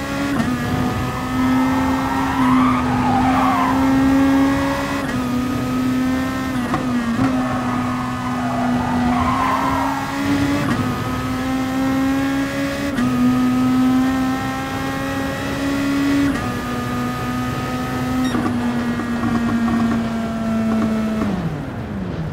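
A racing car engine roars loudly, rising in pitch and dropping with each gear change.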